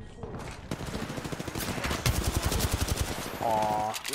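Footsteps patter quickly on dry ground.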